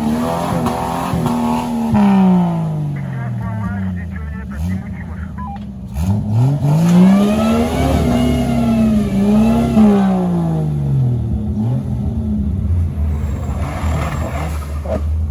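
An off-road vehicle's engine revs hard, rising and falling in pitch.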